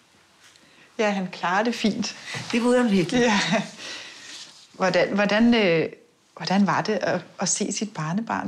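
An elderly woman speaks calmly and cheerfully, close by.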